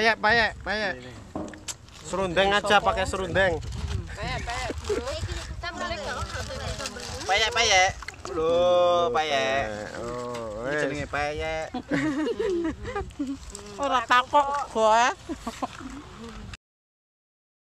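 Young women chatter and laugh close by.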